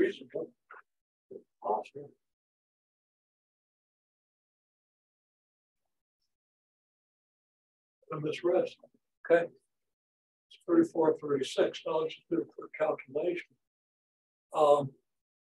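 An elderly man lectures calmly, pausing between phrases.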